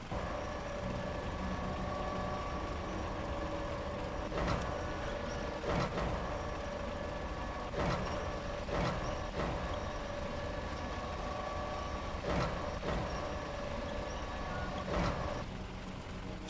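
A crane motor whines as cargo is lifted and swung.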